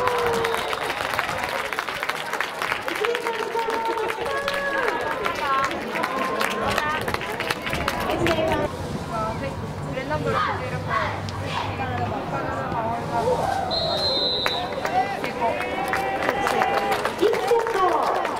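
A crowd of people shouts and cheers outdoors.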